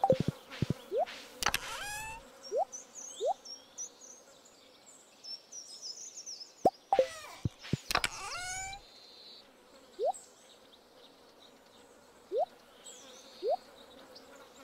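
Short rising blips sound as items are picked in a game menu.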